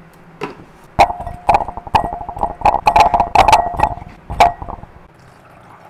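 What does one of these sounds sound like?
Vegetable pieces drop and clink into a glass bowl.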